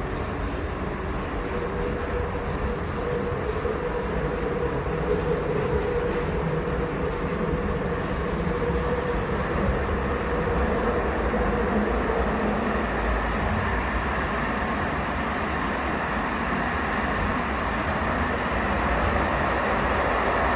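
A train's motor hums, rising in pitch as it speeds up.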